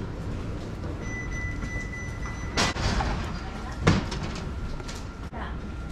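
Footsteps tap on a wooden floor indoors.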